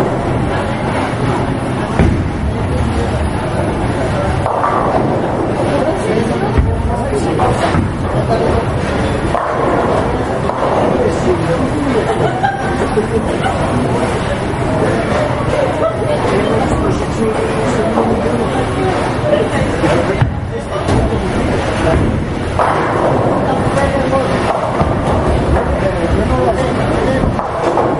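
Bowling balls roll down wooden lanes with a low rumble.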